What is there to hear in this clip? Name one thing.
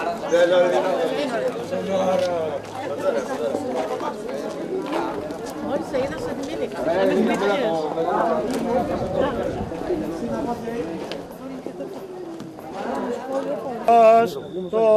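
A crowd of men and women chatter outdoors as they walk.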